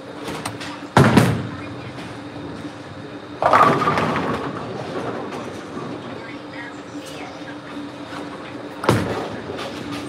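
A bowling ball thuds onto a wooden lane in a large echoing hall.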